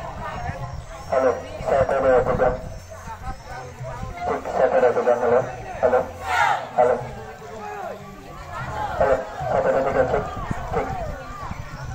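A group of young people call out together in unison.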